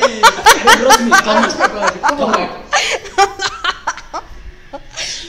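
A young woman laughs loudly in bursts close by.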